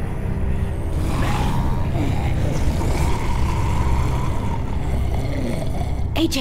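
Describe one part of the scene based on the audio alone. Zombies growl and snarl close by.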